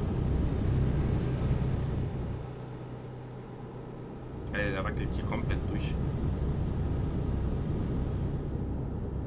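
A truck engine rumbles steadily while driving on a motorway.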